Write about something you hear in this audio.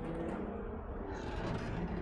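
Thunder rumbles.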